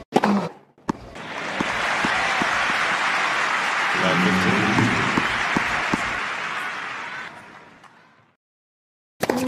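A large crowd applauds loudly, then the applause fades away.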